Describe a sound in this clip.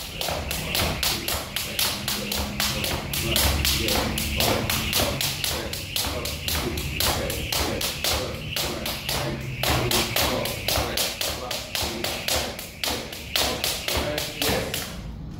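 A jump rope whips and slaps the floor in a fast, steady rhythm.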